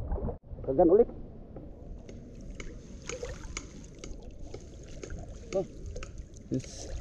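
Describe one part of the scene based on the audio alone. A person wades through shallow water with sloshing steps.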